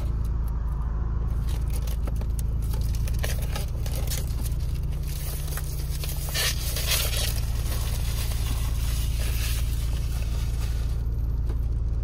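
Plastic wrapping crinkles and tears as a box is opened by hand.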